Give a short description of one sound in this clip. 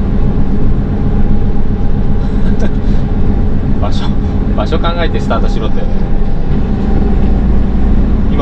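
A heavy vehicle's engine rumbles steadily while driving.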